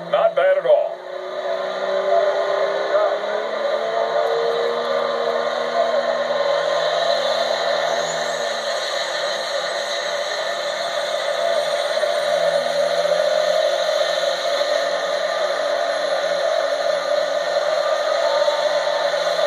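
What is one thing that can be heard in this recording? A diesel truck engine roars loudly and steadily under heavy strain.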